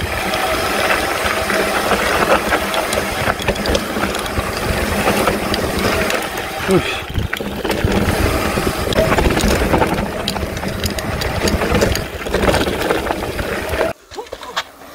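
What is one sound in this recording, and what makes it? Bike tyres crunch over loose dirt and stones.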